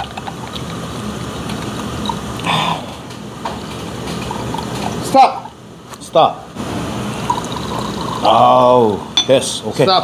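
Liquid pours from a bottle into a glass.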